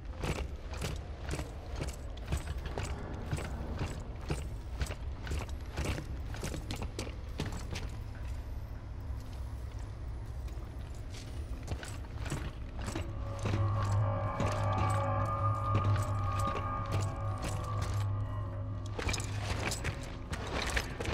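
Footsteps crunch steadily on a hard floor.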